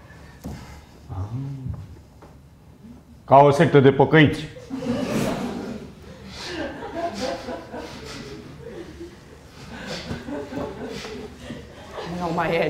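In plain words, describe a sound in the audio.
A man speaks in a calm, low voice on a stage.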